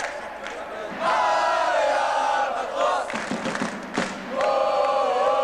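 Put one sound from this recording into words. A crowd of fans cheers and shouts.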